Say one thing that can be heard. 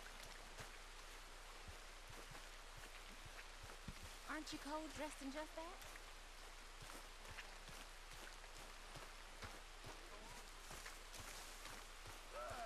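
Rain falls steadily outdoors.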